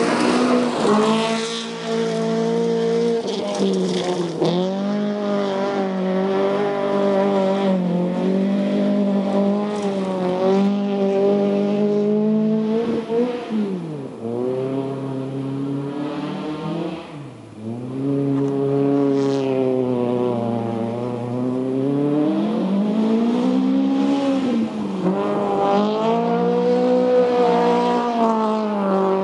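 A rally car engine roars past close by and then revs hard in the distance.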